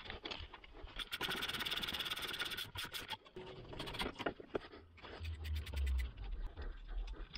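A ratchet wrench clicks rapidly.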